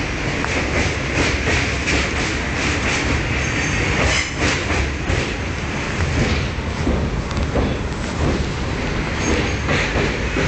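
Wind rushes loudly past an open window.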